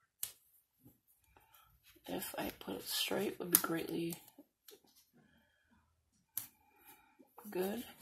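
Fingers rub and press on paper.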